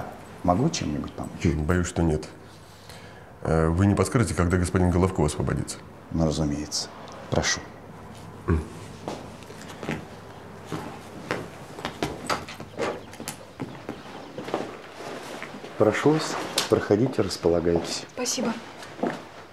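A man speaks tensely in a low voice close by.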